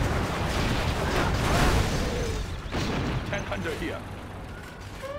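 Explosions boom and gunfire rattles in a battle.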